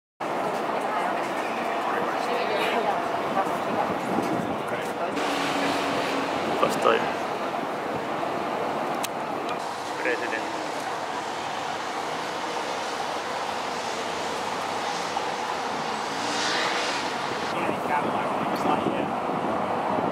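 Cars drive past on cobblestones.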